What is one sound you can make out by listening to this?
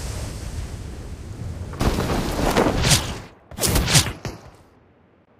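Wind rushes loudly.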